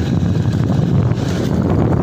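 Motorcycles ride past on a street nearby.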